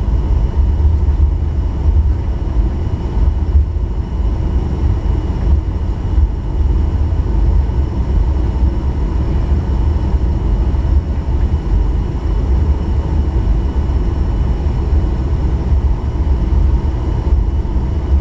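Wheels rumble over the runway.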